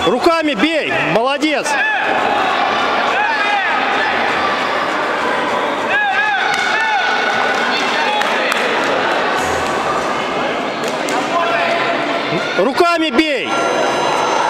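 Young children shout sharply as they spar.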